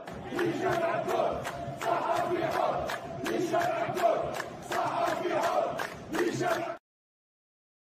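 Hands clap rapidly in a crowd.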